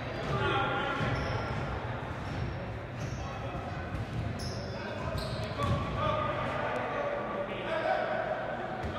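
Players shout to each other in a large echoing gym.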